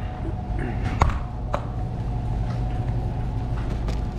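A cardboard box rustles as it is picked up.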